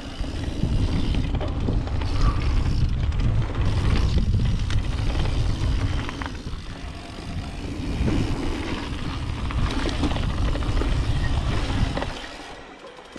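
Wind rumbles loudly past the rider.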